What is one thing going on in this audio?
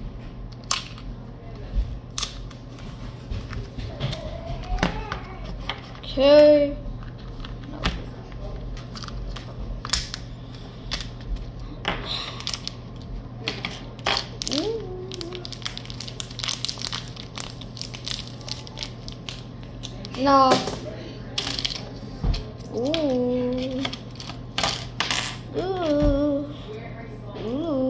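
Crackers and wrappers rustle and click in a boy's hands.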